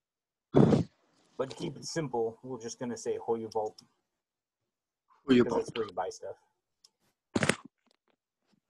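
An elderly man speaks slowly and clearly over an online call, pronouncing words.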